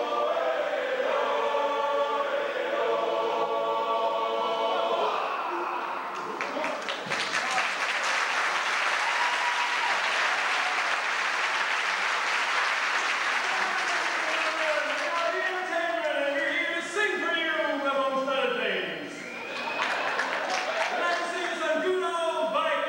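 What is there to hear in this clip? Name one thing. A large choir of young voices sings together in a large echoing hall.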